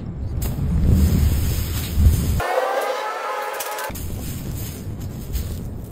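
Molten metal pours and sizzles softly.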